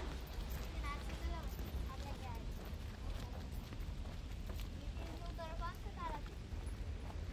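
Young boys talk quietly outdoors.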